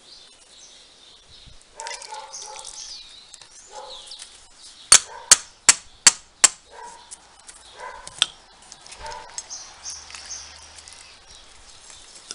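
Water pours from a watering can into the soil.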